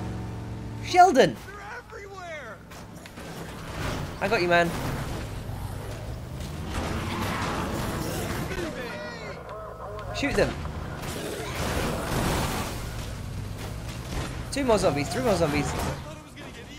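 A van thuds into bodies as it rams through a crowd.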